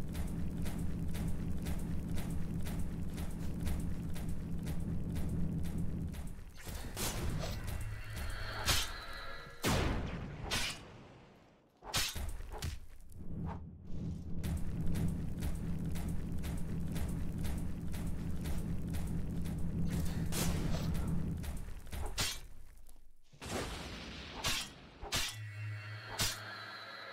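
Sword blows land with sharp hits and swishes.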